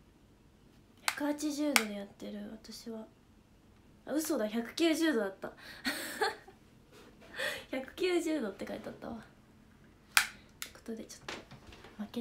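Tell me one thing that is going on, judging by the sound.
A young woman speaks close to a microphone, in short animated bursts.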